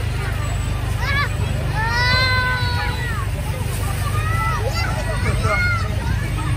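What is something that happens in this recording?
Young children call out in high voices.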